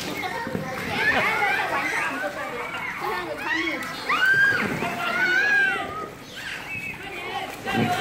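Water splashes as children play in a pool.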